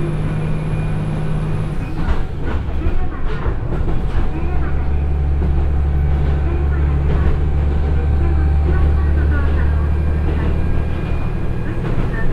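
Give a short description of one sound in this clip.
A train's diesel engine hums and throbs steadily.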